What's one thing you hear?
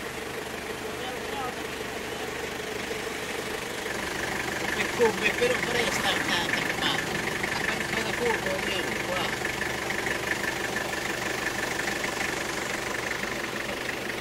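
A vehicle engine idles nearby.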